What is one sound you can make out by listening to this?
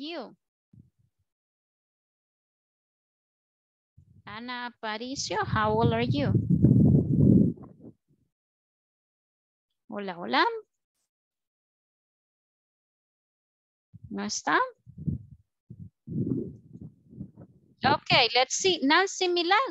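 A woman speaks through an online call, calmly and with pauses.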